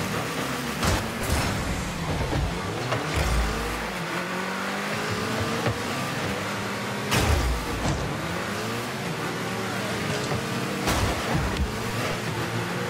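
A game car's engine hums and revs steadily.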